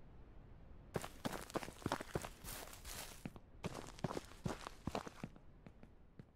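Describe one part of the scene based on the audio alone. Footsteps hurry over ground and a wooden porch.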